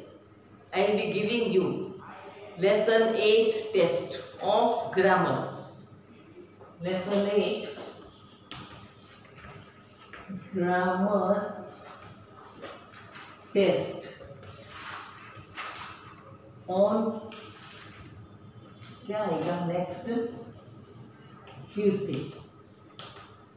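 An elderly woman speaks clearly and slowly, as if teaching.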